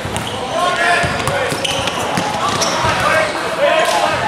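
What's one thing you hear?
A basketball is dribbled on a wooden court.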